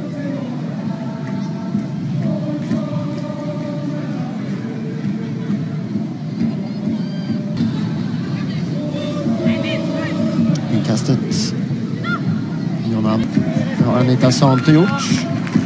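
A crowd of spectators chants and murmurs across an open stadium.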